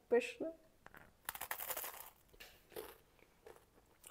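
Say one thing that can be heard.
A young woman bites into crunchy toasted bread and chews.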